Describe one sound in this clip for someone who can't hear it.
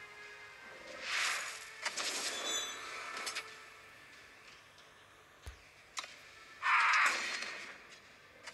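A magical whoosh and shimmer sound out.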